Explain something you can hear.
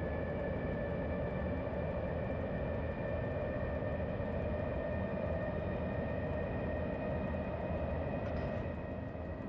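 An electric locomotive hums and rumbles steadily as it runs fast along the rails.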